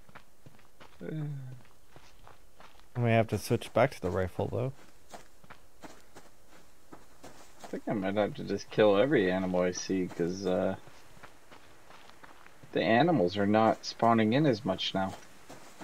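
A man talks into a microphone with animation, close up.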